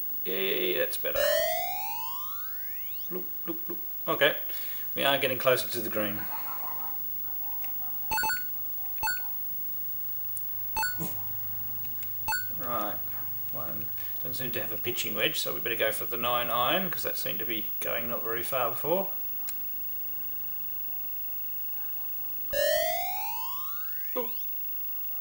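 A video game plays a rising electronic tone.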